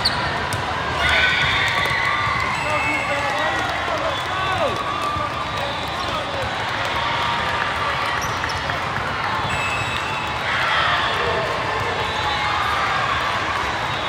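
Young girls shout and cheer from the court.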